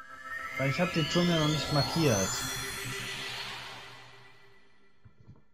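A magical shimmering whoosh rises and fades away.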